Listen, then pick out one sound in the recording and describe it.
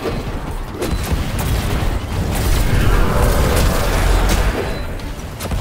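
Explosions rumble and thud.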